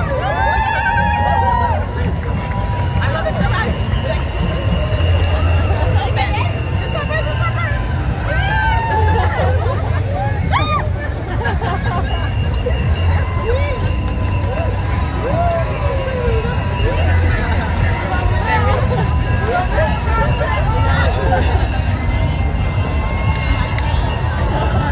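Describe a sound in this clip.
Women and girls whoop and shout excitedly nearby.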